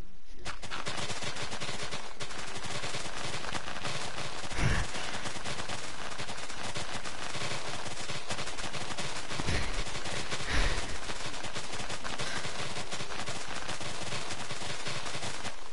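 Blocks of dirt are dug out with soft crunching thuds.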